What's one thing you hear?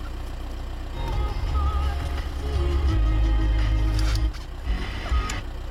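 A car radio plays through the car's speakers.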